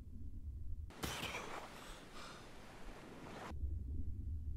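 Water splashes and rushes as a swimmer breaks the surface.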